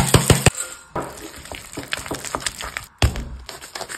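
A spoon scrapes and mixes a thick mixture in a glass bowl.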